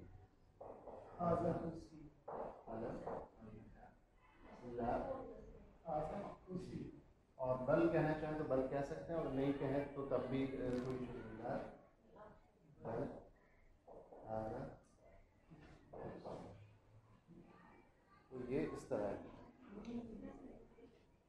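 A man speaks calmly and clearly nearby, as if teaching.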